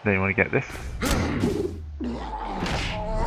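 Armoured players crash into each other with a heavy thud.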